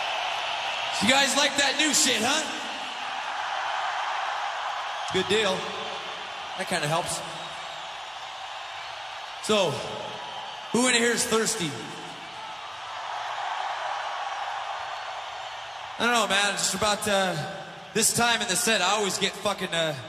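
A man shouts to the crowd in short bursts through loudspeakers.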